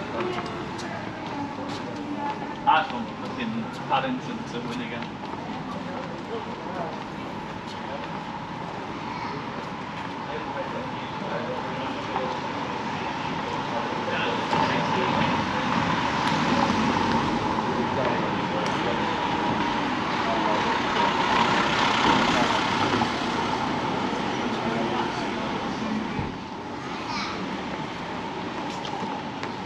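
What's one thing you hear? Traffic hums steadily along a town street outdoors.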